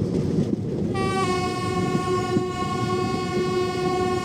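A train horn sounds a long steady blast.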